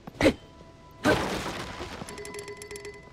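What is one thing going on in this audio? A wooden crate smashes apart with a crash.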